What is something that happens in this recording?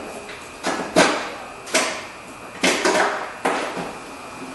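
Sharp knocks and clatters ring out as a car door panel is handled.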